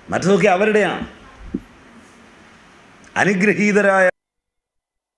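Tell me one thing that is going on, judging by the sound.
An elderly woman speaks with animation into a microphone, close by.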